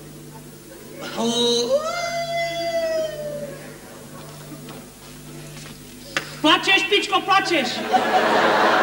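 A second man answers in a loud voice.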